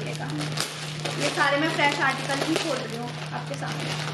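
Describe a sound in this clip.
Plastic wrapping crinkles as it is pulled open.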